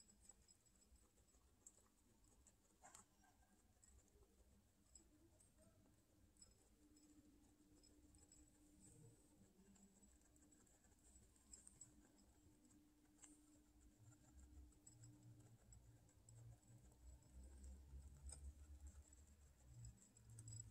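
Guinea pigs crunch dry food close by, with small clicks and rustles.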